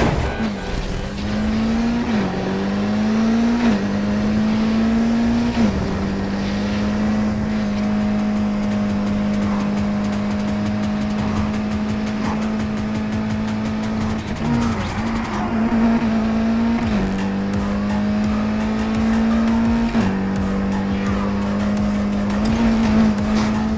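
A racing car engine roars at high speed, climbing in pitch and dropping sharply at each gear change.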